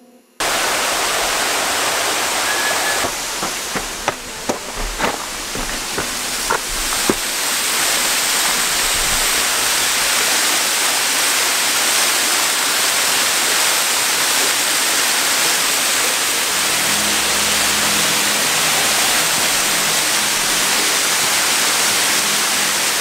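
A waterfall splashes and roars steadily nearby.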